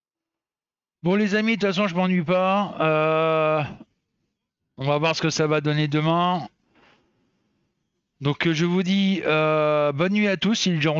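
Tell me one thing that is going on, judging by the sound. A middle-aged man talks with animation into a headset microphone, close by.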